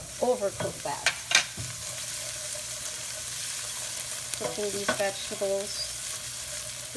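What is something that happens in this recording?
Food sizzles gently in hot oil in a pan.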